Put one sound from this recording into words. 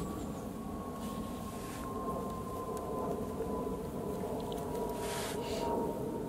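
A knife scrapes against birch bark in short strokes.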